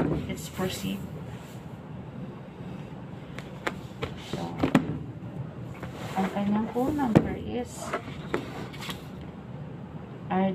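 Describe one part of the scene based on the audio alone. Books knock and rustle as they are handled on a desk.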